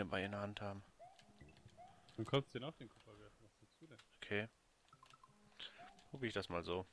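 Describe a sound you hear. Short electronic game sound effects chirp and beep.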